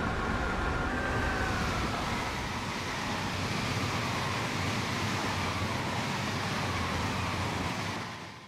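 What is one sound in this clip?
A passing train rushes by with a loud hiss.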